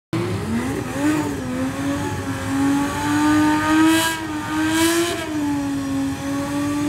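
A sports car engine revs loudly and rises and falls in pitch.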